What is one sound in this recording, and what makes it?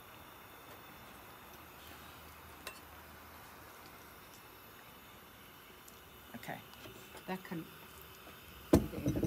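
A wooden spoon stirs a thick stew in a pan.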